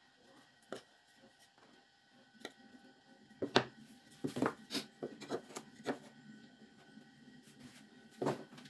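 Small wooden blocks knock and tap against a wooden bench.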